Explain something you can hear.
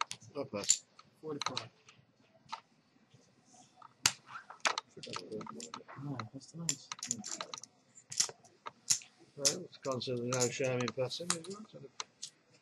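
Poker chips click against each other on a table.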